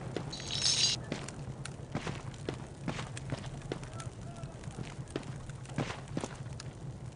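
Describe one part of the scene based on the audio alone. Footsteps tread steadily on a stone floor.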